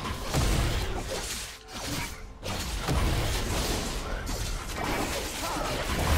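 Heavy blows thud against a large beast.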